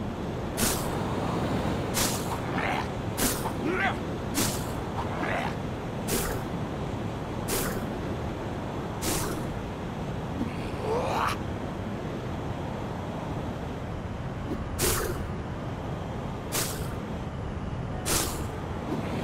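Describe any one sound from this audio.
Web lines shoot out with sharp whooshing snaps, again and again.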